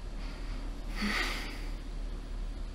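A woman speaks briefly in a low voice.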